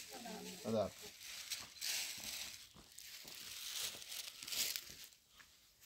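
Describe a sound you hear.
Footsteps crunch on dry gravelly ground.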